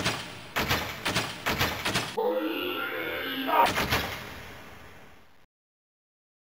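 A robot whirs and clanks as it moves.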